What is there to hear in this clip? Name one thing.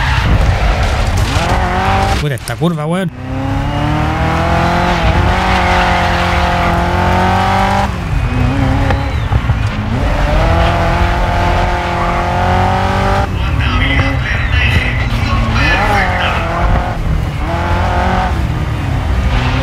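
A racing car engine roars loudly and revs up and down through gear changes.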